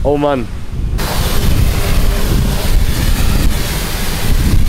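A pressure washer sprays water onto a car with a steady hiss.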